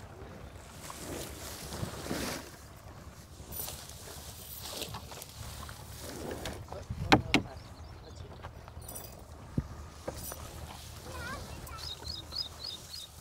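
Leafy fodder rustles as a woman handles it.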